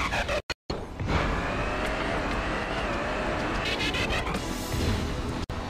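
A truck engine revs and roars.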